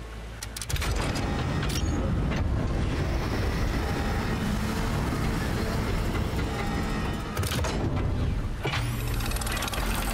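A machine hums steadily.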